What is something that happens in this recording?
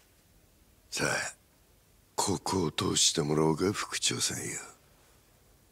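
A man speaks sternly, close by.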